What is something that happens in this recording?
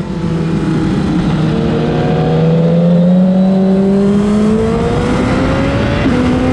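A motorcycle engine roars at high revs, slowly rising in pitch, then drops as it shifts gear.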